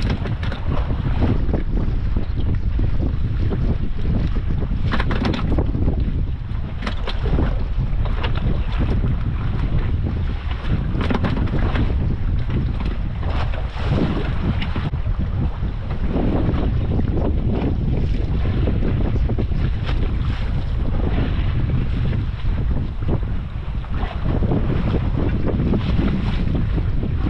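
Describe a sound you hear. Wind blows hard outdoors on open water.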